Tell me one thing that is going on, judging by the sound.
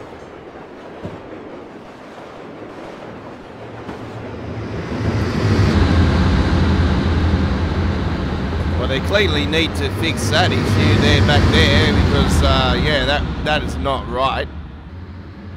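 A freight train rumbles heavily past on the tracks.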